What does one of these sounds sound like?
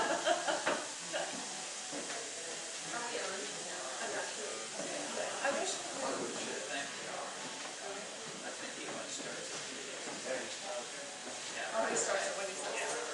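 Several adults chat quietly nearby.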